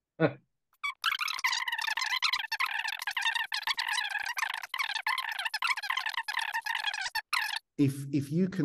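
A man speaks calmly over a thin, tinny online call.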